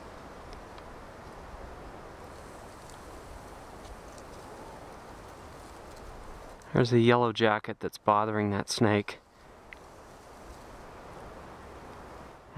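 A snake slithers through dry leaves with a soft rustle.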